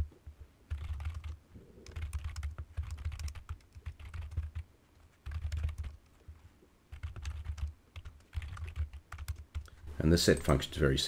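Keys on a keyboard click rapidly as someone types.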